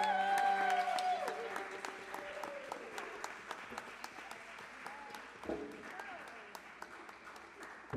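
Footsteps tap on a wooden stage.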